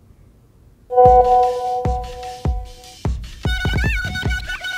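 A phone chimes with message alerts.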